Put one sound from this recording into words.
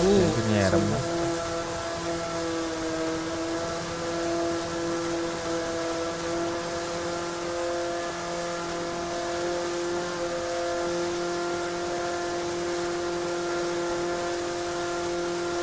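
A jet ski engine drones steadily.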